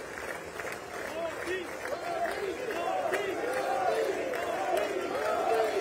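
A crowd cheers and shouts with excitement.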